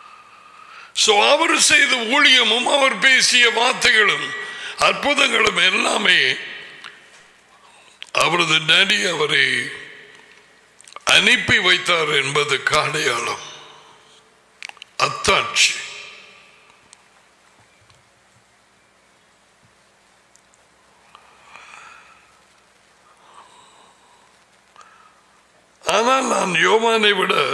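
An elderly man speaks slowly and deliberately into a close microphone, with long pauses.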